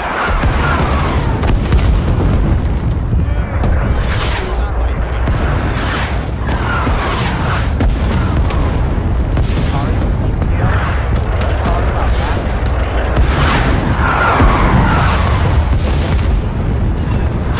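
Low explosions and battle noise rumble steadily in the distance.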